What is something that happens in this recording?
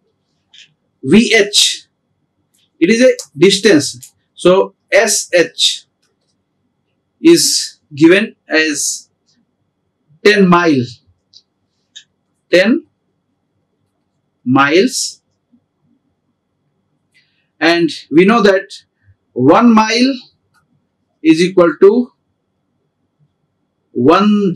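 A middle-aged man lectures calmly into a close microphone, with pauses.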